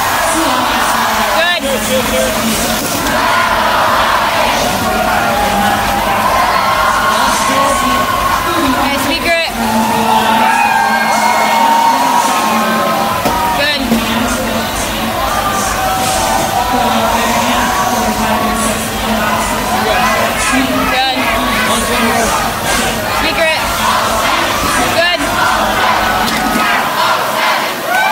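A crowd cheers and chatters in a large echoing hall.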